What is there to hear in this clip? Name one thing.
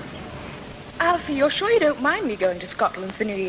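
A young boy speaks with animation through an old microphone.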